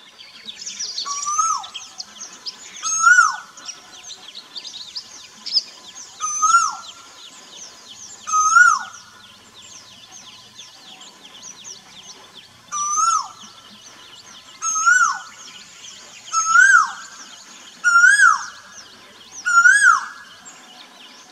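An Asian koel calls with repeated whistled notes.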